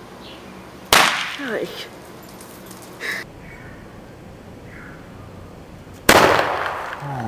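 A small firecracker bangs sharply nearby outdoors.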